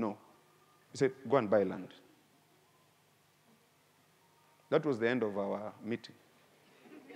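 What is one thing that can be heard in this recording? A man speaks calmly through a clip-on microphone, with pauses.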